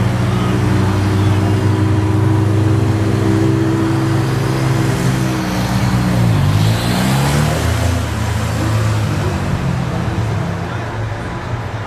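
A car horn honks repeatedly.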